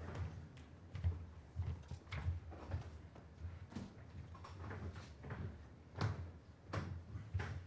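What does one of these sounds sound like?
Footsteps tap across a floor.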